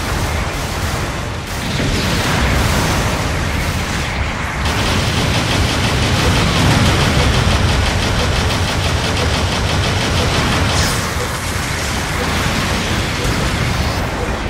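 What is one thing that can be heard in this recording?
Mech thrusters roar steadily.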